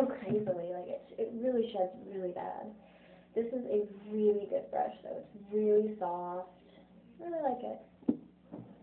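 A young woman talks casually close to the microphone.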